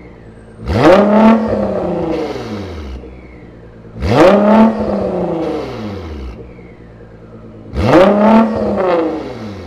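A car exhaust pops and crackles after each rev.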